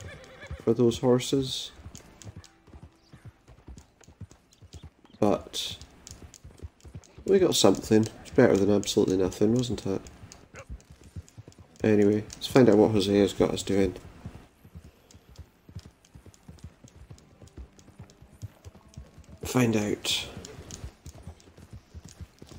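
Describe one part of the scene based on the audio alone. A horse's hooves thud in a steady gallop on dirt and grass.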